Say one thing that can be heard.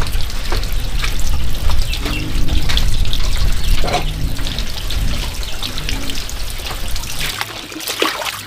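Water pours steadily from a pipe into a basin.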